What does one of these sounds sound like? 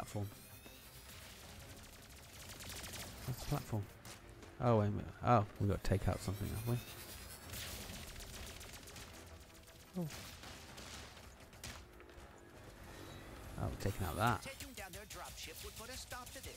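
A young man talks with animation close to a microphone.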